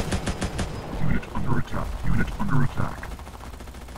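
Explosions boom heavily.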